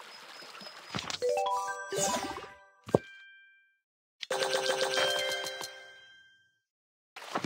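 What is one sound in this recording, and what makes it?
Bright electronic chimes ring out in quick rising runs.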